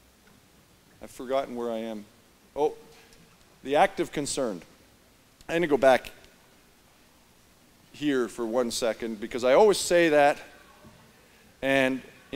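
A middle-aged man speaks calmly into a microphone in a large echoing hall, pausing between phrases.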